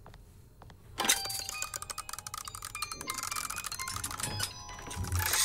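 A jack-in-the-box plays a tinkling tune.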